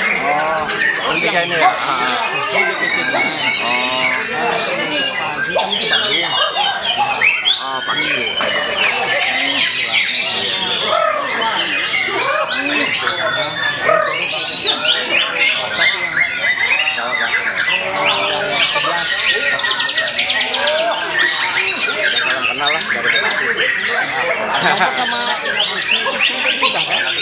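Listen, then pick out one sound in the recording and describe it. Many songbirds sing and chirp loudly all at once, with busy, overlapping whistles and trills.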